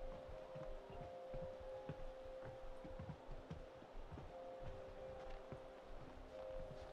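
Footsteps thud slowly on stone.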